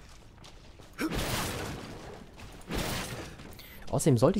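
A sword whooshes through the air in quick swings.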